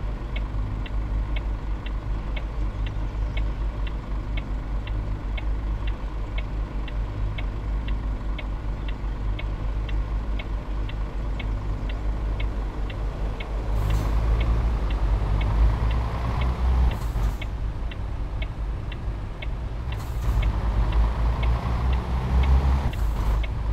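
A heavy truck engine rumbles steadily and revs up as it speeds.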